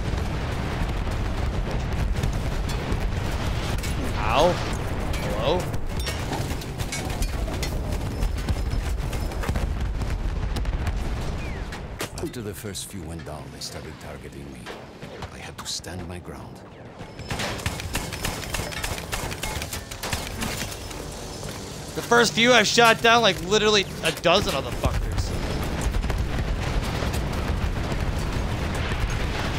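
An anti-aircraft gun fires rapid bursts.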